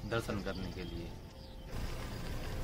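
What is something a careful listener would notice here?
A young man speaks calmly.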